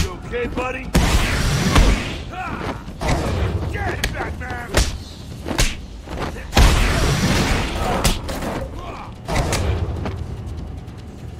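Bodies thud onto the floor.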